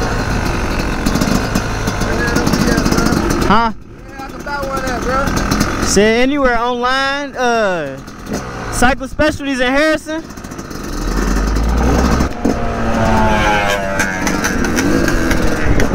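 A motorcycle engine rumbles and revs close by.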